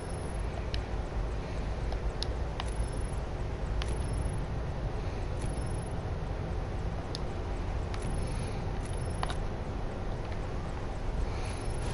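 A helicopter's engine and rotor drone steadily.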